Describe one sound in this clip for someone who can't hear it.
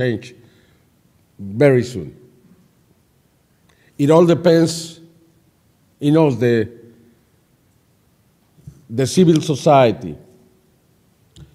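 An elderly man speaks slowly into a microphone, in short phrases with pauses, in a room with some echo.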